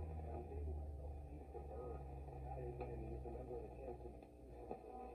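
A low hum comes from an old radio.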